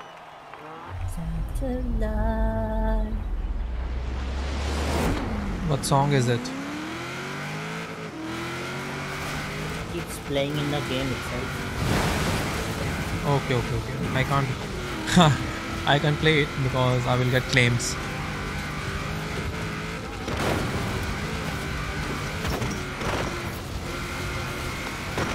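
A car engine revs hard and roars as the car speeds up.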